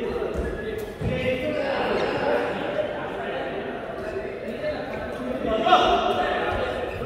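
A badminton racket smacks a shuttlecock.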